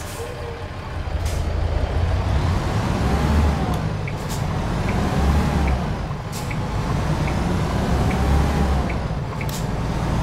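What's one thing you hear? A truck's engine roars louder and revs up and down as it pulls away through the gears.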